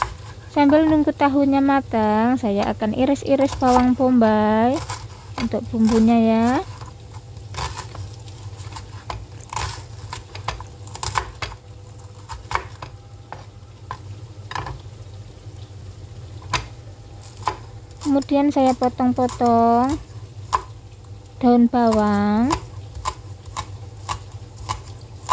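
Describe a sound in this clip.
A knife taps on a cutting board as it slices an onion.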